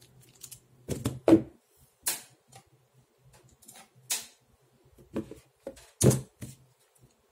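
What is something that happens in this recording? A cardboard box thumps down onto a desk.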